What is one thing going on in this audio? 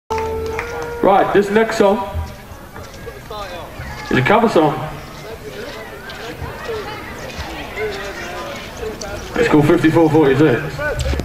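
A young man sings loudly into a microphone through loudspeakers outdoors.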